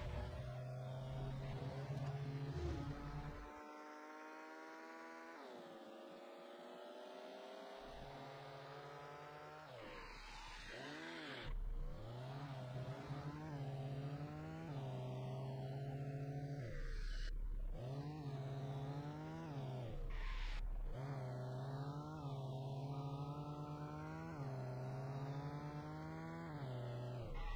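A car engine roars and revs, climbing in pitch and dropping back again and again as the gears change.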